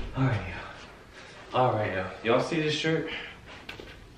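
Fabric rustles as a young man shakes out a shirt.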